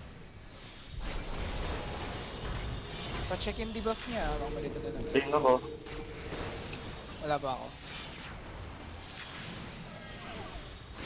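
Magical spell effects whoosh, crackle and chime in bursts.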